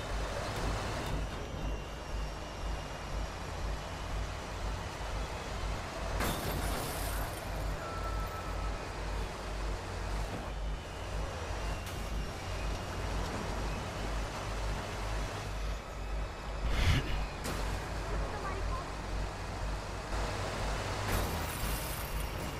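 A truck engine rumbles steadily as it drives down a road.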